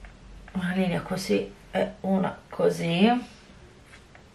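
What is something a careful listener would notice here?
A middle-aged woman speaks calmly and close up.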